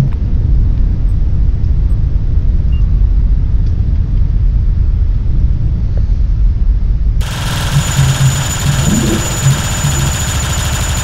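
A huge explosion rumbles deeply and roars on.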